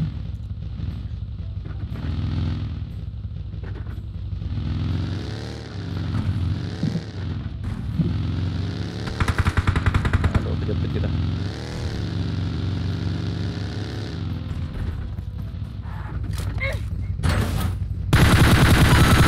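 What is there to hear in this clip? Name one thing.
A buggy engine drones and revs steadily.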